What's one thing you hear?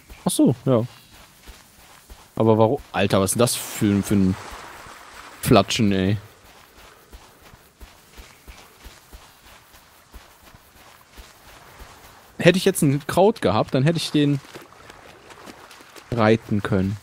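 Footsteps thud quickly on sand.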